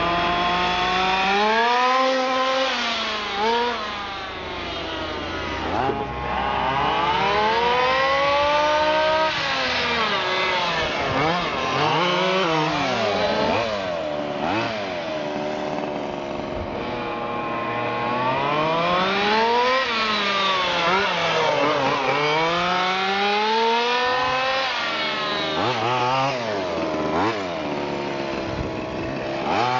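A small electric motor whines high, rising and falling in pitch as a radio-controlled car speeds around.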